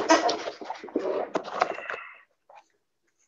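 A cardboard box rustles as it is moved.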